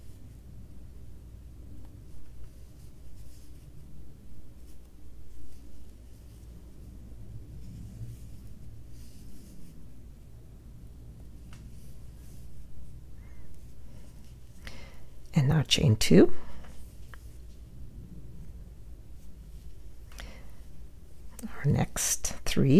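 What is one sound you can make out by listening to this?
A crochet hook and yarn rustle softly close by.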